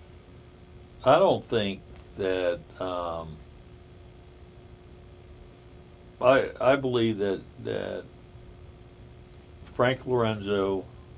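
A middle-aged man speaks calmly and slowly, close by, with long pauses.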